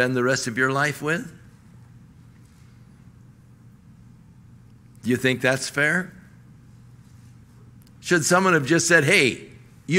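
An older man speaks emphatically into a microphone, in short phrases with long pauses.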